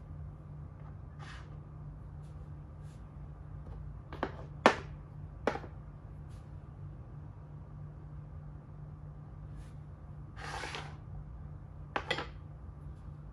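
Wooden game pieces click and tap on a wooden board.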